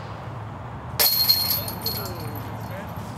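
A flying disc crashes into metal chains, which jingle and rattle.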